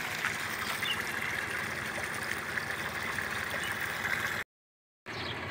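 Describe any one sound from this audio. A water pump engine runs with a steady drone.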